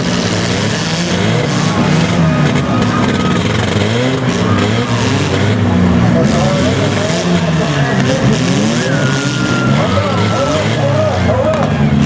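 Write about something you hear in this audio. Car engines rev and roar loudly outdoors.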